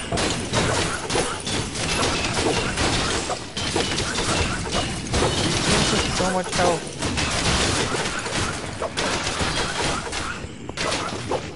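Rapid blows and magical blasts clash in a fight between game characters.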